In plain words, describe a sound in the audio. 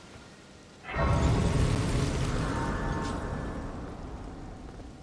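A soft, glowing chime rings out.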